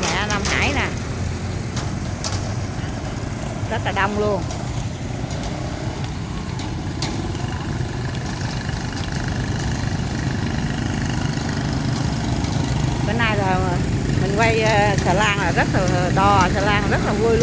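Motorbike engines idle and rev nearby.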